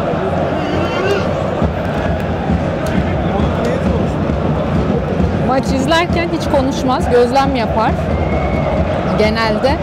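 A large stadium crowd roars and chants steadily all around.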